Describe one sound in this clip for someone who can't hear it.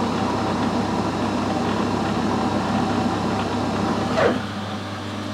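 A metal tool grinds against a spinning brass part, then eases off.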